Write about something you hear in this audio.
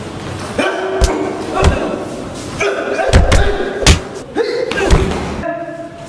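Blows land with sharp thuds during a fight.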